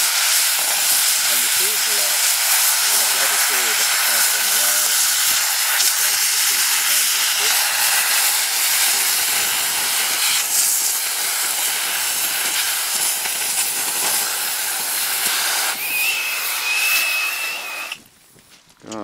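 A cutting torch roars with a loud, steady hiss.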